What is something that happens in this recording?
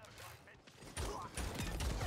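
A game weapon fires rapid energy shots.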